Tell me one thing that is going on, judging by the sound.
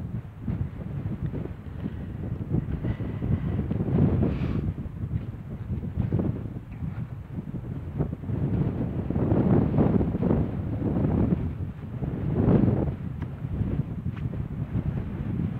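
Strong wind buffets loudly outdoors, gusting throughout.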